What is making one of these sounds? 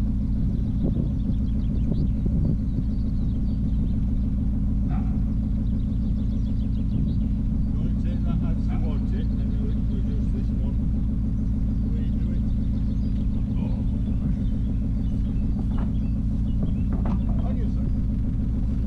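Wind blows steadily and roughly across the microphone outdoors.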